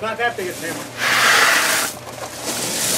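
Gravel pours out of a bucket with a loud rush.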